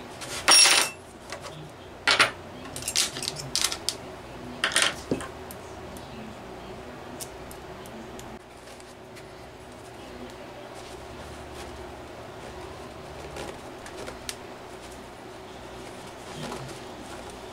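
Metal parts of a small engine clink and knock as hands handle it.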